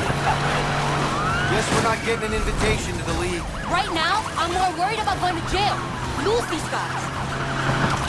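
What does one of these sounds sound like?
Police sirens wail close by.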